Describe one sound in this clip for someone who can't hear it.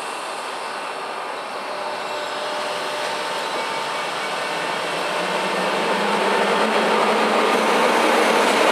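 Train wheels squeal and clatter on the rails.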